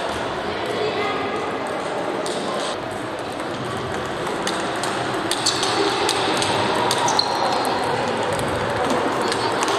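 Table tennis balls click sharply on tables and paddles, echoing in a large hall.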